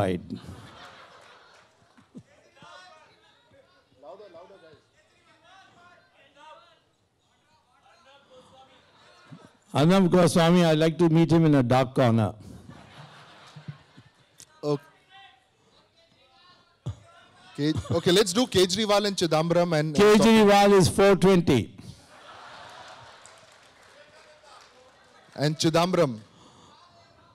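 An elderly man speaks animatedly into a microphone.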